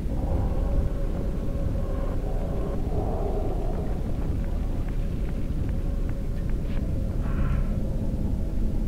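A sword swings with a whooshing hum.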